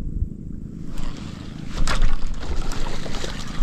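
A fishing reel clicks and whirs as it is wound.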